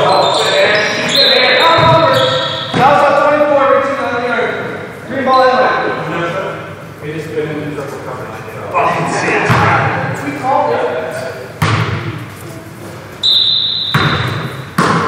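Men call out and talk loudly in a large echoing gym.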